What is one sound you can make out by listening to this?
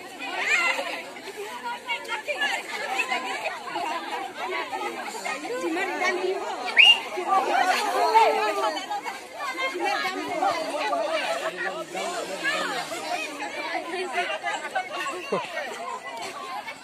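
Women shout and cheer nearby.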